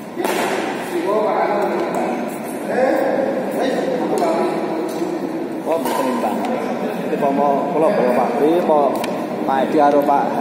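Men talk and call out nearby in a large echoing hall.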